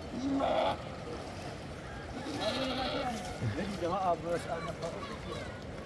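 Water splashes as a man wades through a shallow river.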